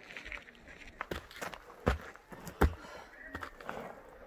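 Footsteps crunch on a rocky dirt trail.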